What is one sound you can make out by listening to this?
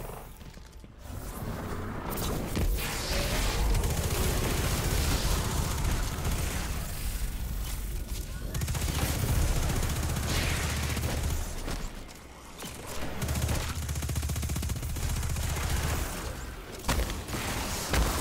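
Rapid gunfire rattles with crackling energy blasts.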